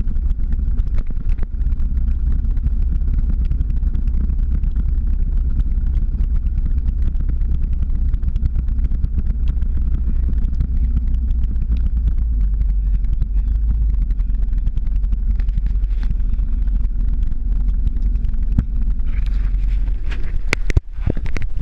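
Small wheels roll steadily on asphalt.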